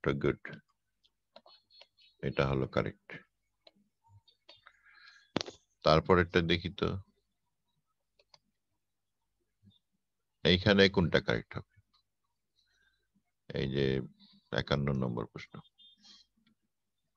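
A man speaks calmly in short bursts over a microphone.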